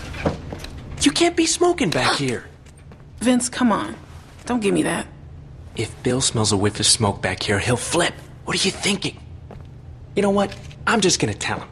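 A young man speaks with irritation, heard closely.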